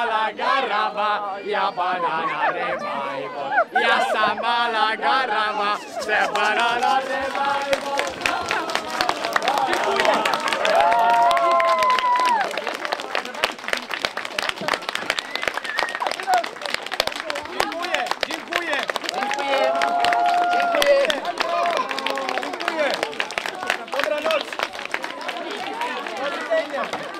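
Children and adults in a crowd cheer and shout excitedly.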